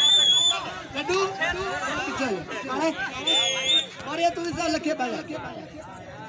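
A man nearby shouts excitedly.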